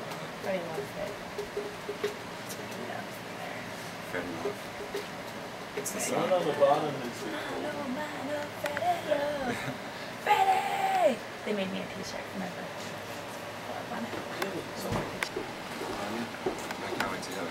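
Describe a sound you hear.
Several young people talk and laugh nearby.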